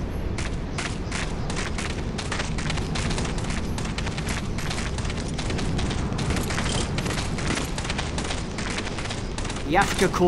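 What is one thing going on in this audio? Quick footsteps crunch on gravel.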